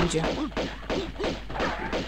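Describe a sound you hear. A wooden staff strikes with heavy thuds.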